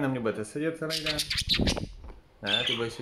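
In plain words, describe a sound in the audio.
Bird wings flutter as a budgerigar flies off.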